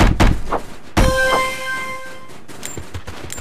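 A bright magical chime rings out and fades.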